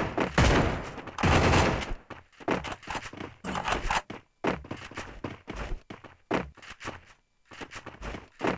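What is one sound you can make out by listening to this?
Footsteps run over hard ground.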